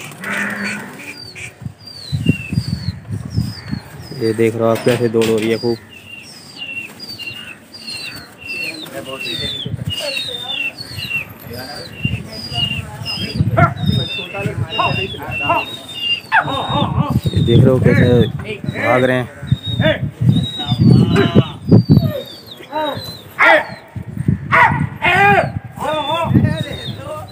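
Men shout and call out loudly nearby, outdoors.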